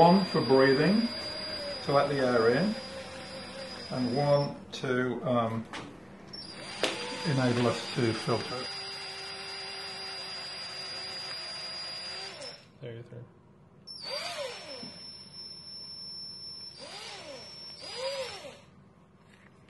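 A cordless drill whirs in short bursts, close by.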